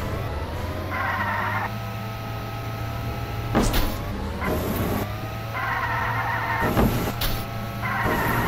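Kart tyres skid and screech on the ground.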